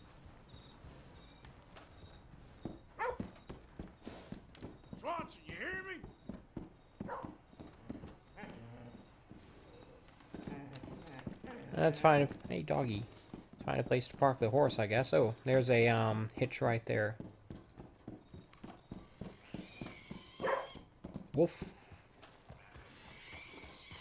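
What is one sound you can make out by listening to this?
Horse hooves clop on wooden boards.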